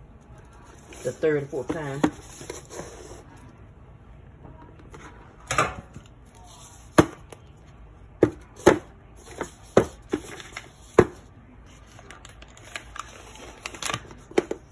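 Plastic bottles knock and clatter as they are moved by hand.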